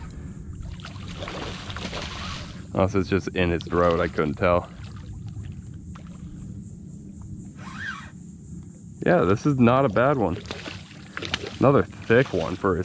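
A fish splashes and thrashes at the water's surface.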